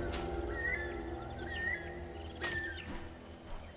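A bird calls overhead with high, sweeping chirps.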